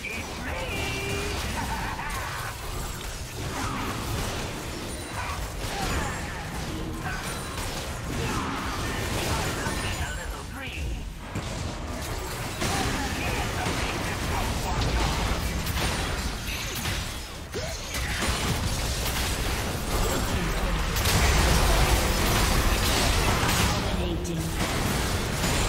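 Spell effects whoosh and crackle in a video game battle.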